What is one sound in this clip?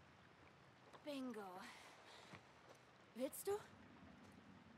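A young man speaks in a friendly voice, close by.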